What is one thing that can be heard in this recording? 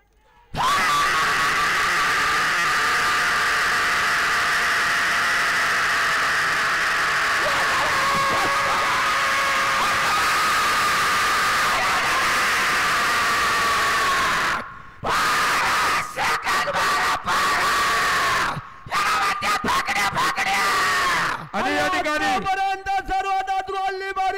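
A large outdoor crowd cheers and shouts.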